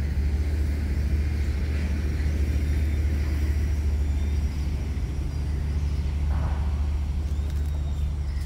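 A caged bird chirps faintly now and then.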